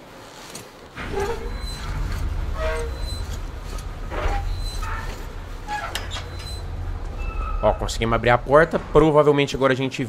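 A heavy metal valve wheel grinds and rumbles as it turns.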